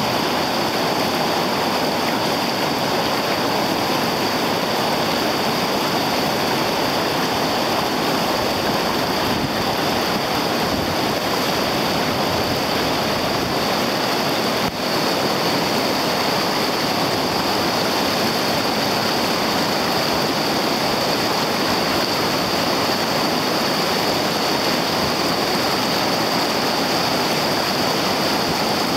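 River rapids roar and churn close by.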